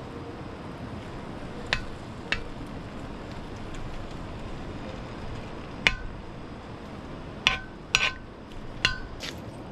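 A utensil scrapes and taps on a pan.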